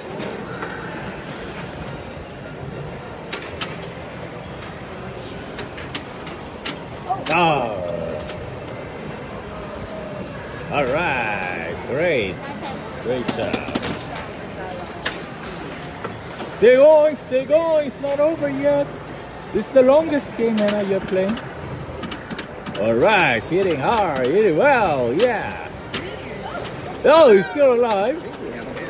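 Pinball flippers click sharply.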